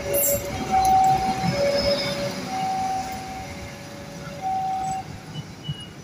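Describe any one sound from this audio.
A train horn blows in short two-note blasts close by.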